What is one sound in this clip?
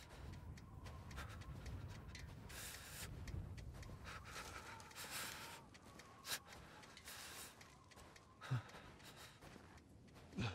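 Footsteps crunch through snow, close by.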